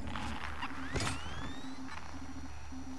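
A handheld motion tracker beeps and chirps with rising tones.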